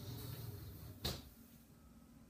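A window latch clicks.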